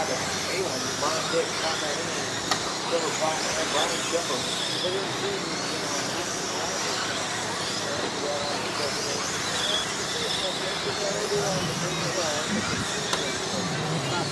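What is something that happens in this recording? Tyres of small cars skid and crunch on packed dirt.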